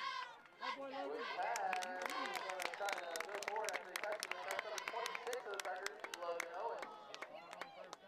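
A crowd claps rapidly.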